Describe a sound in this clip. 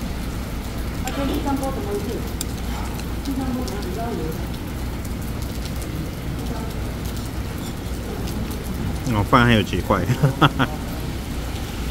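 A metal spoon scrapes against a bowl.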